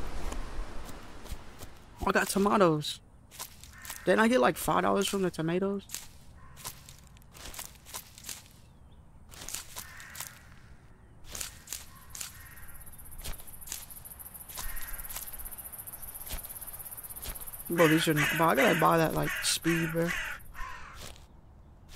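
Footsteps swish through tall grass.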